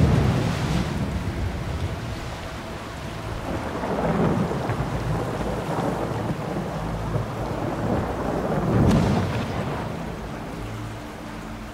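A man wades through flowing water, splashing.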